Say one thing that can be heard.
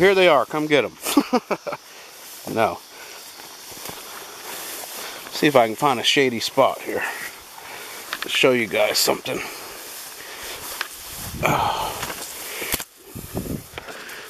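Tall grass rustles and swishes as someone pushes through it.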